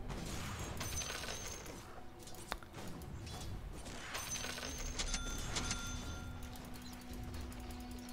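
Magic spells whoosh and weapons clash in a fantasy battle.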